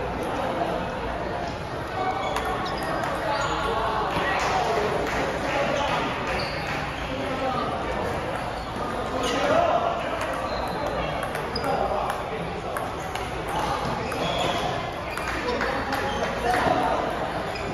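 Several men chatter in the background of a large echoing hall.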